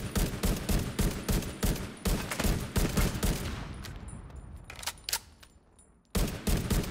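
A rifle fires rapid bursts of loud shots that echo in a room.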